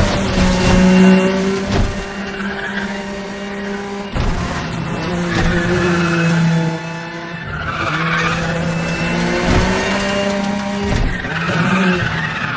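A sports car engine roars at high revs, its pitch rising and falling with gear shifts.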